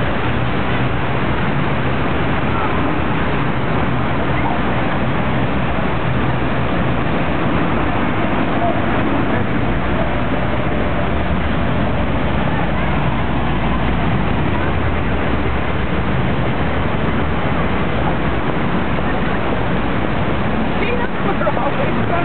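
Traffic hums steadily in the distance outdoors.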